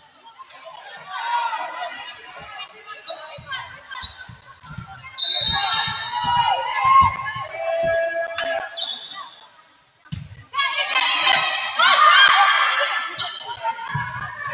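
Young women shout and call to each other in a large echoing gym.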